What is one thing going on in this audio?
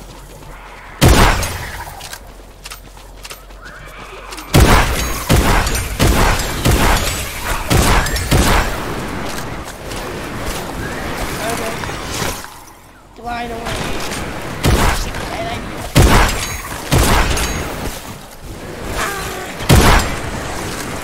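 Gunshots crack out in sharp, loud bursts.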